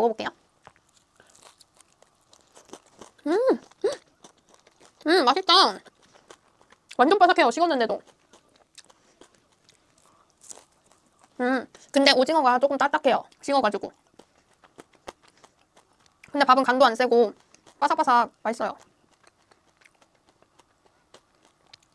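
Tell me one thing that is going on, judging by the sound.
A young woman bites and chews crispy fried food with a crunch.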